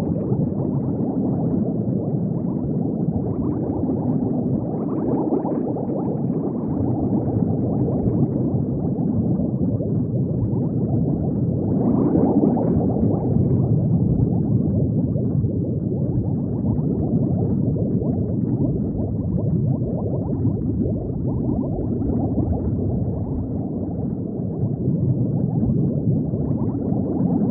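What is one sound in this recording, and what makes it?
Bubbles gurgle softly underwater.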